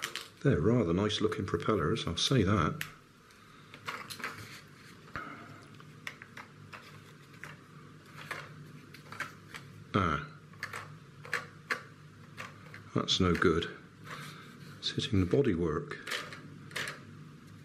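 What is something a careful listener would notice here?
Plastic parts click and snap as they are pressed together.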